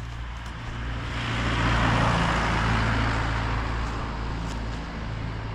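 A pickup truck drives past and its engine noise swells and fades.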